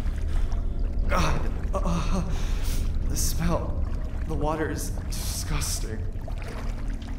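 A young woman speaks quietly into a microphone.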